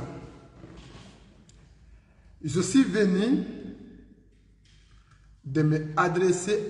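A man speaks earnestly into a close microphone, in short bursts with pauses.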